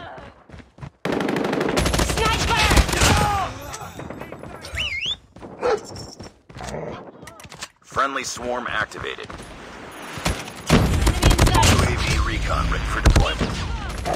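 Rapid rifle fire rattles in bursts.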